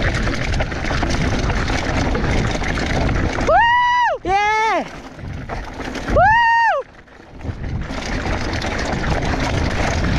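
Mountain bike tyres rumble and crunch over a rutted dirt trail while rolling downhill.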